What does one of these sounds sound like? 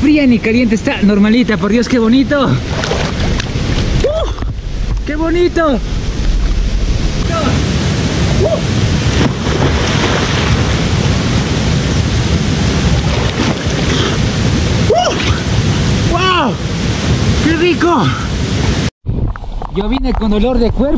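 Water sloshes and laps steadily close by.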